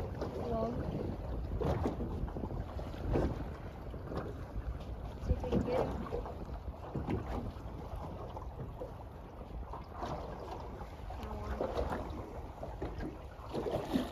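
Waves slosh against a boat's hull.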